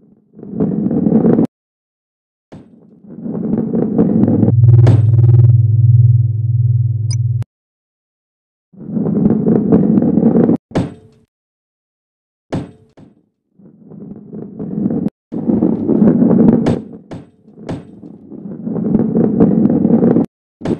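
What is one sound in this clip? A heavy ball rolls along a wooden track with a low rumble.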